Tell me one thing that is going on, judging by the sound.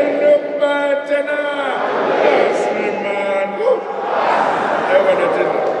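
A crowd chants and sings loudly.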